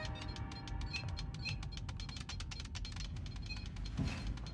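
Rapid electronic beeps sound from a keypad being pressed.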